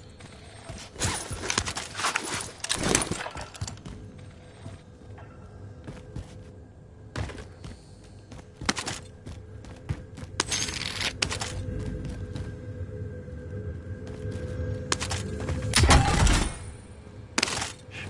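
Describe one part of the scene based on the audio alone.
Metal clicks and rattles as a rifle is handled.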